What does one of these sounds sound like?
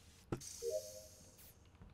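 A short chiming jingle plays.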